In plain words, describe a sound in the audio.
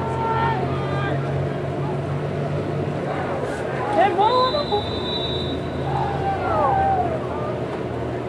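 Children shout and call out at a distance outdoors.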